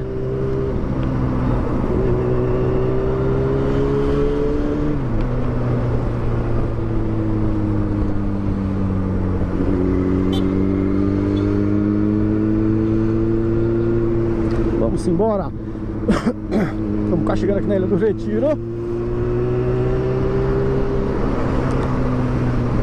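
A motorcycle engine hums steadily close by, its pitch rising and falling with the throttle.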